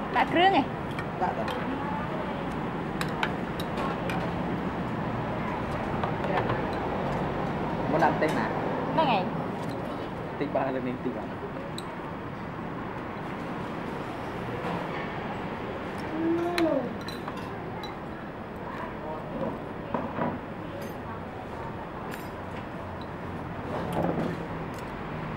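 A young man speaks now and then, close by.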